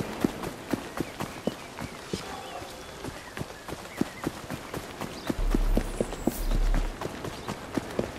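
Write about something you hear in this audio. Quick footsteps run over the ground.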